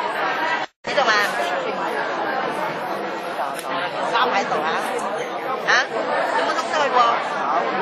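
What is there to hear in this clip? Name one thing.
An elderly man sings into a microphone through loudspeakers.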